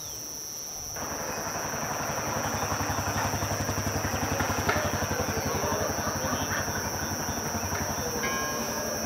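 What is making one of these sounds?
A motor rickshaw engine putters along a street.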